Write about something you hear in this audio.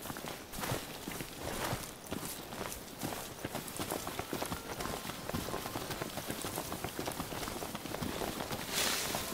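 Footsteps run quickly through grass and brush.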